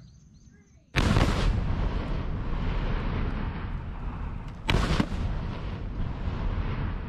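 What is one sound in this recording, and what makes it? A powerful explosion booms nearby, followed by a long rolling rumble.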